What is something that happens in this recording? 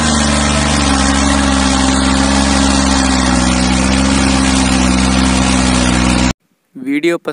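A tractor engine roars loudly and steadily under heavy load.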